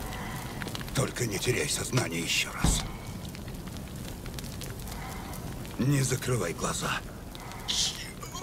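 A man speaks in a low, strained voice close by.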